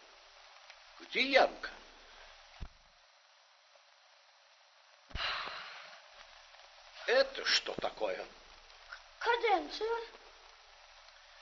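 A young boy speaks loudly and urgently.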